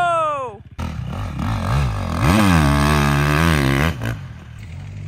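A dirt bike engine revs loudly.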